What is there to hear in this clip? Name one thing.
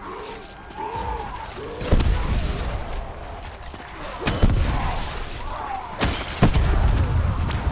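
A heavy weapon fires with loud, deep blasts.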